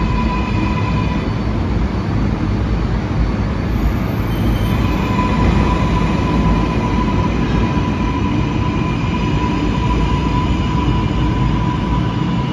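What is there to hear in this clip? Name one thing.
A subway train rumbles and rattles loudly as it pulls out along the platform.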